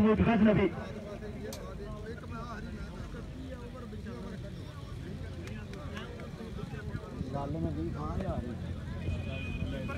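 Several men talk among themselves outdoors at a short distance.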